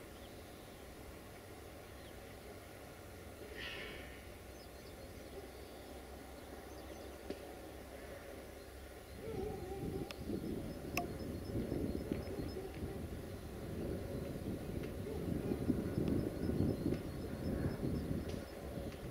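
A diesel locomotive rumbles in the distance as it pulls away down the tracks.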